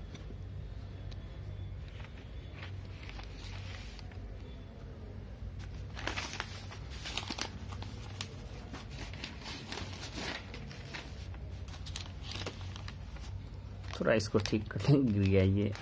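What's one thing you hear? Sheets of paper rustle and crinkle as they are handled.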